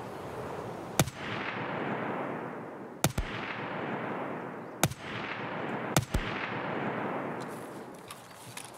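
A rifle fires single loud shots, each echoing away into the distance.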